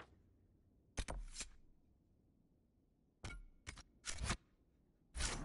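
Menu sounds whoosh and click in quick bursts.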